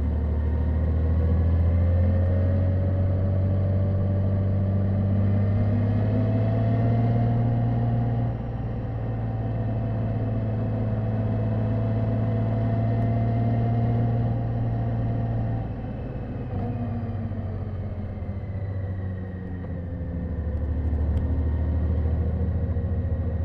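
Wind rushes past a motorcycle rider.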